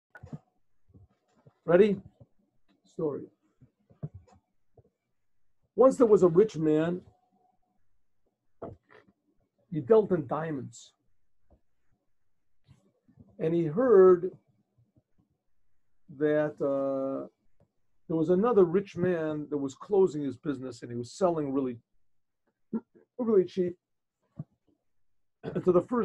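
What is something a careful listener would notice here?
An elderly man speaks calmly in short phrases with pauses, heard through a microphone.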